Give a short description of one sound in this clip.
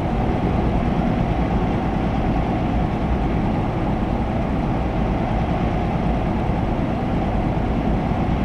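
A truck engine hums steadily while driving at speed.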